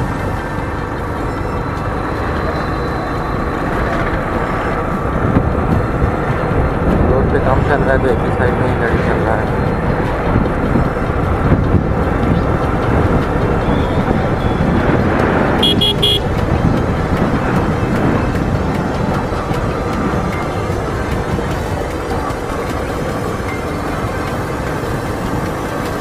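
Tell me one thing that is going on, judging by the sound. An engine hums steadily as a vehicle drives along a road.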